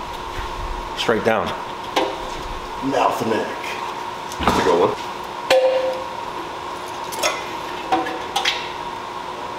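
Metal parts clink and knock close by.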